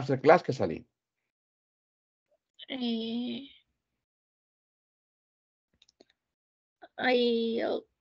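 A man speaks through a headset microphone on an online call, in short drawn-out bursts.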